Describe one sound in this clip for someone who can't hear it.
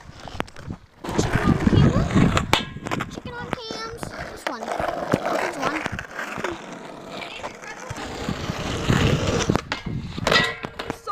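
Skateboard wheels roll over rough asphalt.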